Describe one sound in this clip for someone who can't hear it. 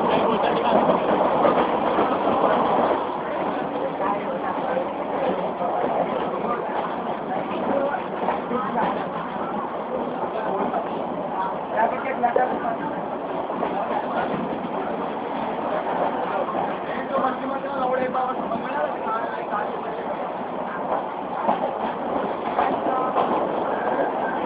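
Young men talk and shout close by over a rumbling train.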